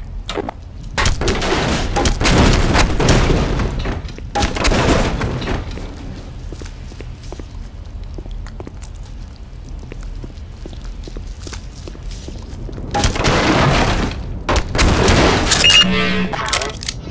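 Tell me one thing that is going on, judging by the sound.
A crowbar strikes a wooden crate with heavy thuds.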